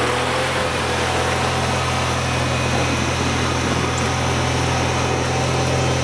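A small engine runs loudly and steadily close by.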